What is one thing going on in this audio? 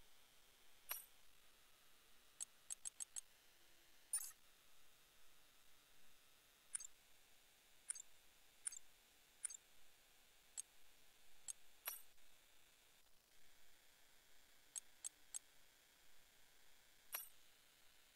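Short, soft interface clicks tick now and then as menu choices change.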